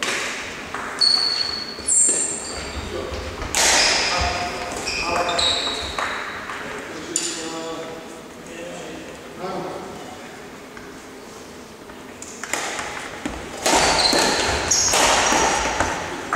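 Sports shoes squeak on a hall floor.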